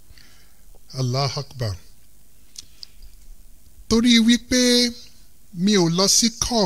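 A man speaks calmly into a microphone in bursts.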